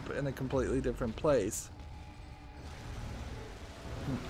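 A monster snarls and growls nearby.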